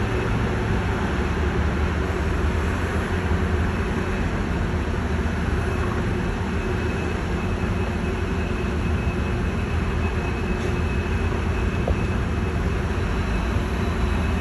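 A city bus drives by with a low engine hum.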